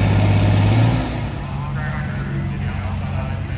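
A second tractor engine rumbles farther off.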